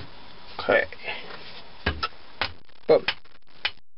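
A hammer taps sharply on wood.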